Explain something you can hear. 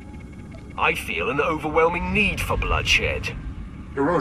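A man speaks calmly in a deep, distorted voice.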